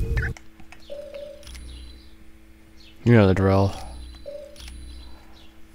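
Short electronic menu blips sound as options are selected.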